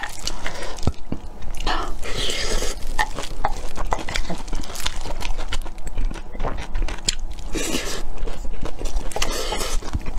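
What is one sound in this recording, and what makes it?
A young woman chews and slurps noodles loudly close to a microphone.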